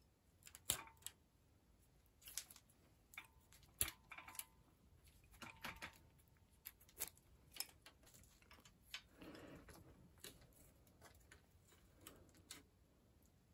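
Metal tools click and clack against a bicycle's brake parts.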